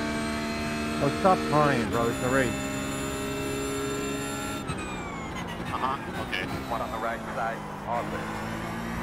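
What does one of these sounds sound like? Other racing cars whine past nearby.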